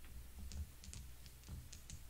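A plastic game piece clicks onto a board.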